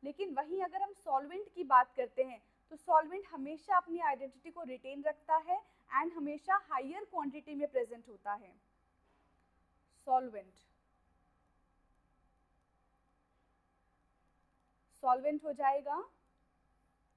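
A young woman explains calmly and with animation, close to a microphone.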